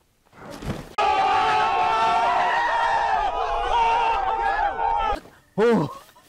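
A crowd of young men shouts and cheers excitedly close by.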